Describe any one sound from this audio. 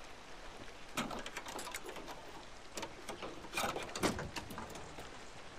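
A metal licence plate is pried off a car with clicks and scrapes.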